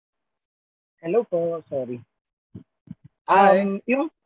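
A young man speaks with animation over an online call.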